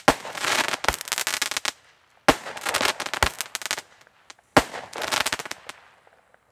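A firework crackles and bangs sharply outdoors.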